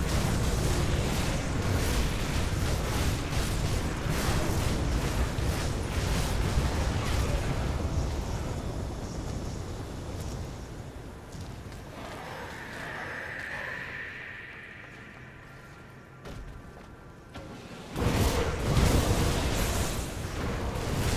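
Fiery spells burst and roar in a fast fight.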